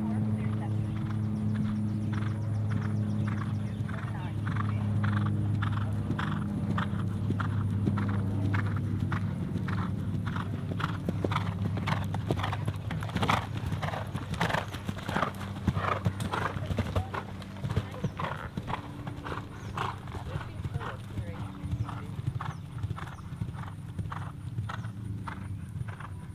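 A horse's hooves thud on grass at a gallop.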